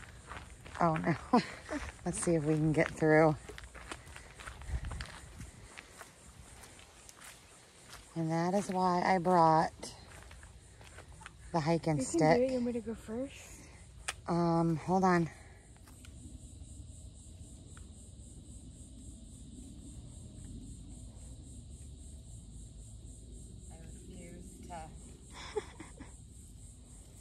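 Footsteps crunch softly on a dirt trail.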